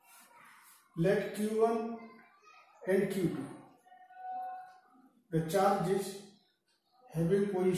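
An elderly man speaks with emphasis, in short loud bursts.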